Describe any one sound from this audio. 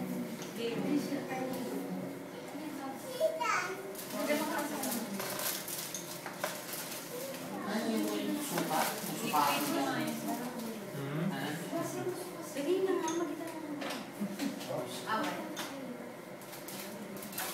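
People chatter and laugh in the room.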